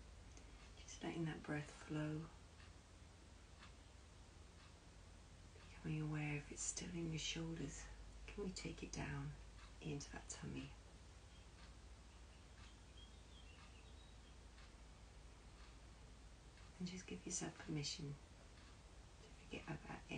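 A woman speaks calmly and softly close by, with pauses.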